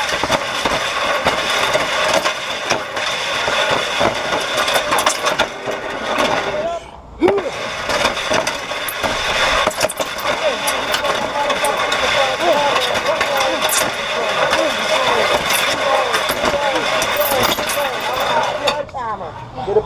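Metal sled runners scrape across asphalt.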